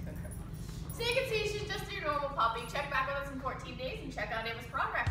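A young woman talks with animation to the listener, close by.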